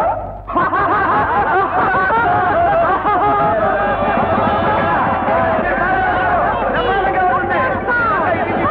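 A large crowd of men shouts and cheers loudly.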